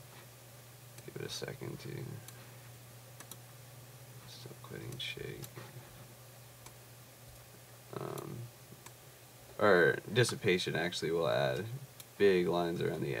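A man talks calmly and closely into a microphone, in short bursts.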